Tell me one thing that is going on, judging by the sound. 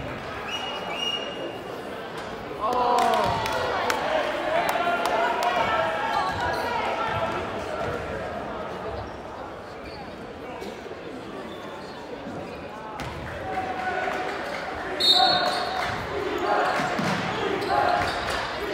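A crowd in a large echoing gym chatters and cheers.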